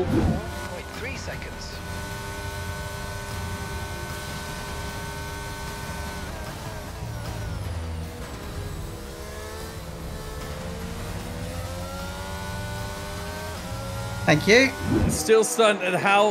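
A racing car engine whines at high revs, shifting pitch as it slows and speeds up.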